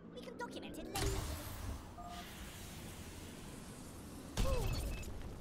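A missile whooshes through the air.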